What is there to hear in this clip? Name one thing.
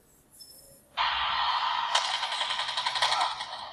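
Rapid gunfire crackles from a mobile game's small speaker.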